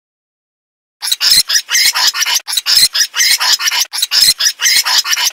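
A rat nibbles and gnaws food in quick crunches.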